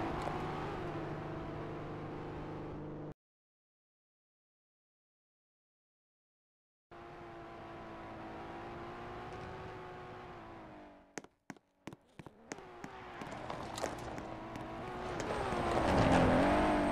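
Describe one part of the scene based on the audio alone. A car engine hums and revs as a car drives.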